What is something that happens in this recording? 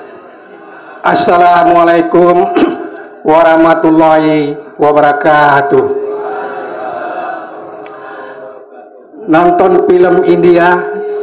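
A man speaks loudly into a microphone, heard through a loudspeaker outdoors.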